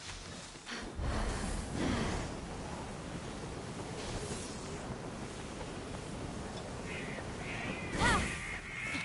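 Rushing wind whooshes loudly during a fast glide.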